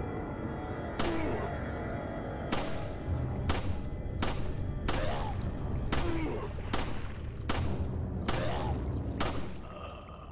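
Gunshots ring out one after another.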